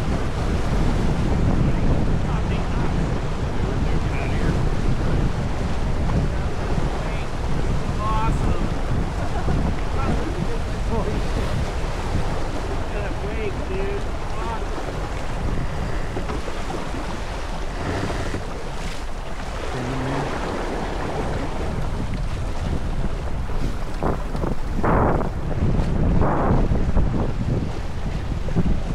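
Water rushes and splashes along a moving boat's hull.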